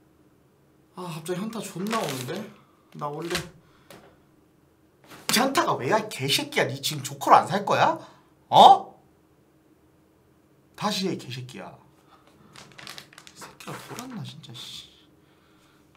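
A young man talks with animation close to a microphone, shouting at times.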